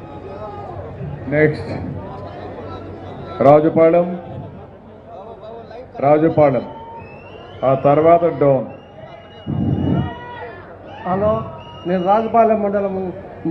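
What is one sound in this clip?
A man speaks loudly into a microphone over a loudspeaker, in bursts with pauses.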